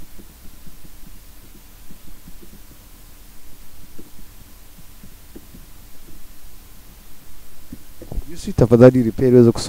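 Keyboard keys click softly as someone types.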